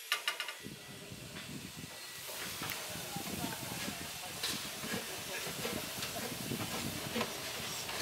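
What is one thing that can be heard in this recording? Steam hisses from a narrow-gauge steam locomotive.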